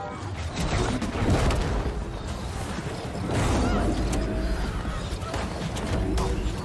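Sword blows clang and strike.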